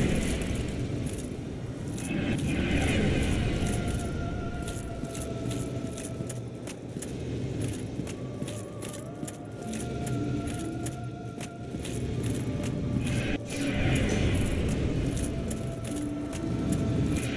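Large wings beat with slow, heavy whooshes.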